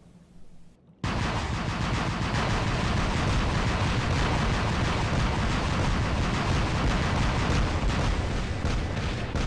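Heavy machine guns fire in rapid bursts.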